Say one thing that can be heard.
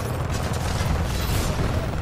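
A large vehicle roars by.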